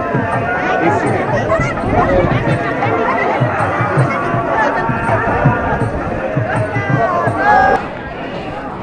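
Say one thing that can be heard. A crowd of men chants and talks loudly outdoors.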